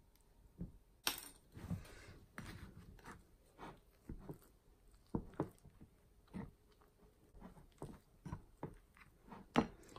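A spoon scrapes and knocks against a glass bowl.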